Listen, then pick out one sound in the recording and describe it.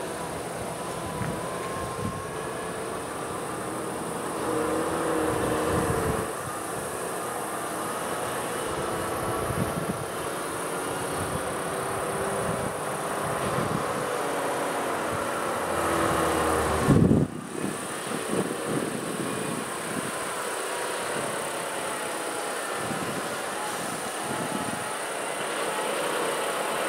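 Sirens wail from approaching emergency vehicles.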